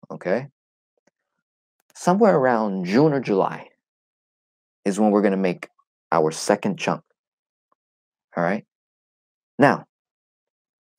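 A young man speaks with animation, close to a microphone, in short bursts.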